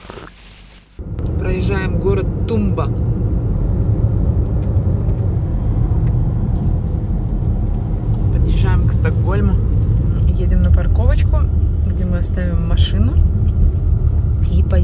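A car engine hums and tyres roll steadily on a road.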